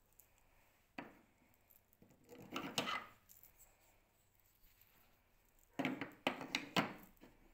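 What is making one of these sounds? Wooden blocks knock and clatter as a hand turns them.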